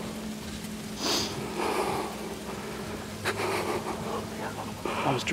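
A man blows a deer call, making low grunting sounds.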